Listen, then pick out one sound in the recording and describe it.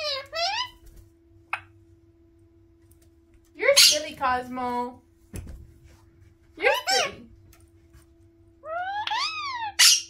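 A parrot squawks and screeches loudly up close.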